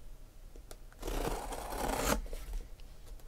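A blade slices through packing tape on a cardboard box.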